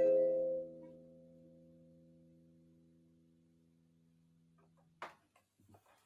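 An electric guitar chord rings out and slowly fades.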